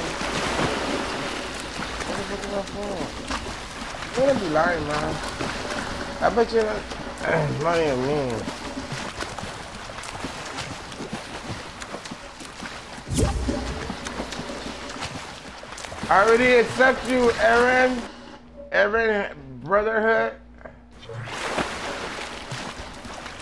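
Water splashes as a game character wades and swims.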